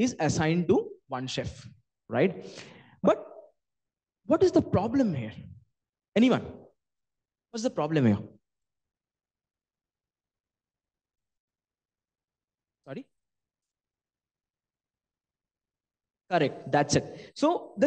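A man speaks calmly through a microphone, giving a talk with pauses.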